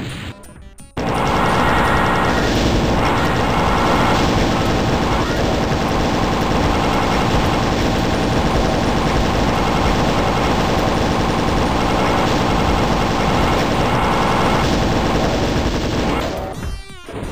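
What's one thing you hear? A weapon fires rapid energy bursts without pause.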